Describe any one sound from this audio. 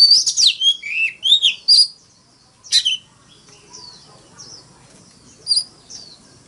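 A songbird sings loud, sweet whistling phrases close by.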